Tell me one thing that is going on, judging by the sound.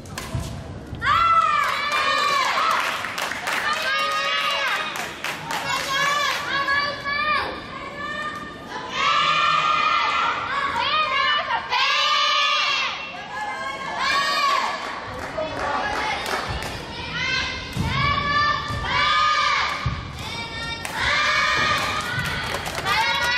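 Sports shoes squeak sharply on a hard court, over and over, in a large echoing hall.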